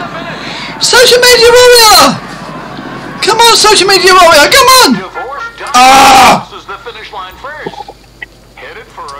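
A man talks loudly and with animation into a close microphone.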